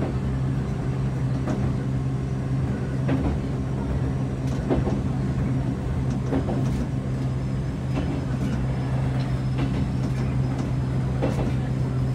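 An electric train hums as it runs along the track, heard from inside the cab.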